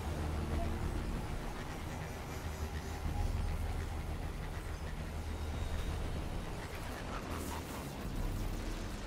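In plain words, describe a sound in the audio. A vehicle engine hums and roars steadily.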